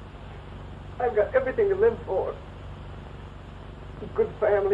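A man speaks with feeling, in short bursts.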